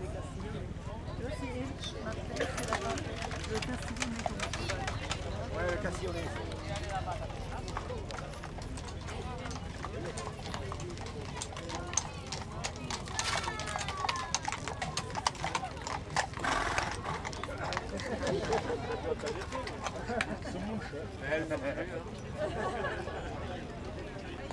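Horse hooves clop on a paved road.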